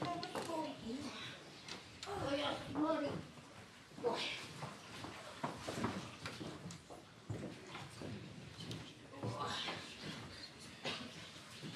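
Wet cloth swishes and splashes in a wooden tub.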